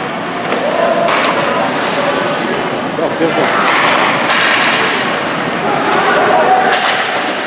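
Spectators cheer and shout in a large echoing rink.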